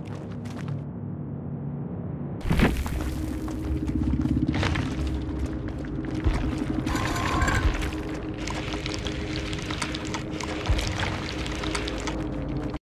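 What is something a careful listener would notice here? Footsteps rush through tall dry grass.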